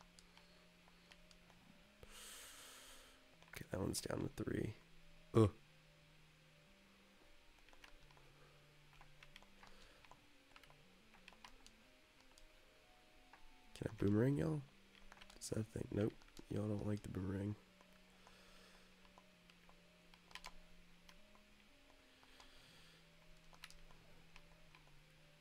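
Retro video game music plays with simple beeping tones.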